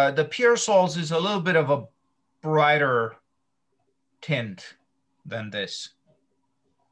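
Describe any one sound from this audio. A middle-aged man talks calmly over an online call.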